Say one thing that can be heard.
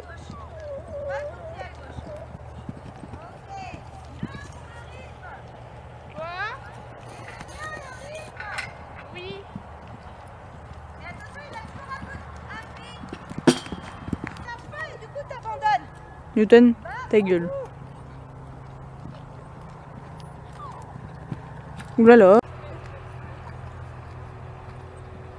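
A horse canters with soft hoofbeats on sand.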